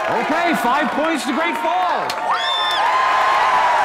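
Young women cheer and shout excitedly.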